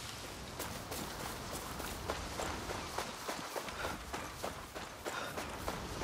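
Footsteps crunch quickly over dry dirt and gravel.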